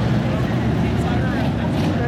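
A crowd chatters in the distance.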